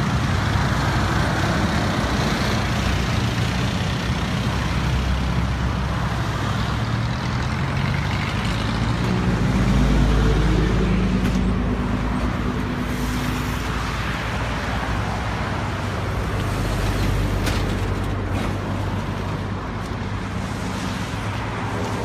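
Traffic roars past close by on a busy road.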